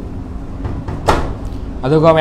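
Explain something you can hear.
A washing machine door swings shut with a thud.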